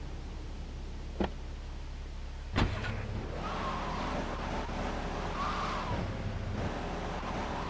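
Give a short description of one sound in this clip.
A car engine idles and then revs as the car drives off.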